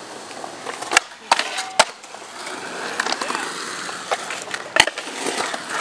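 A skateboard clacks sharply against concrete and metal.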